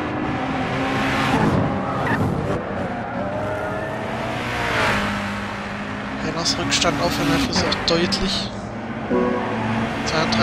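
Racing car engines roar and whine as they rev up and down.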